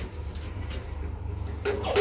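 A finger clicks an elevator push button.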